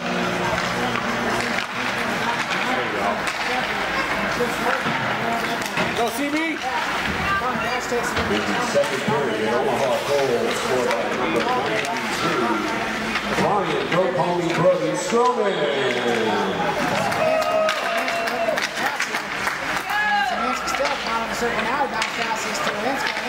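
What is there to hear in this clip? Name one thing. Skates scrape and carve across ice.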